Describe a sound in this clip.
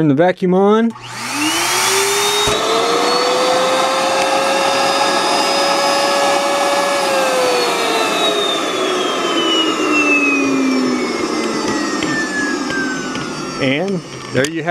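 A vacuum motor starts up with a rising whine, runs loudly and steadily, then slowly winds down.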